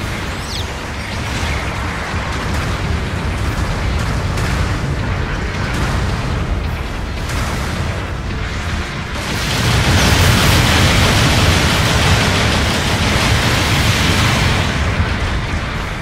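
Heavy mechanical footsteps thud and clank.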